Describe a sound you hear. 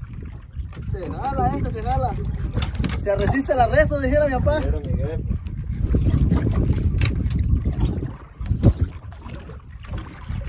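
Waves slap against a small boat's hull.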